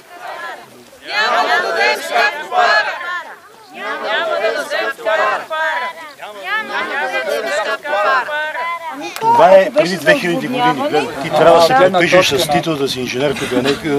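A crowd of men and women sings together loudly outdoors.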